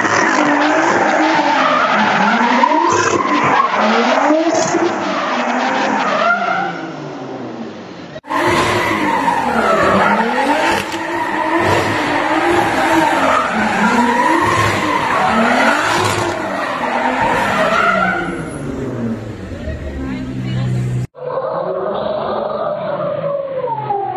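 A car engine revs hard, rising and falling again and again.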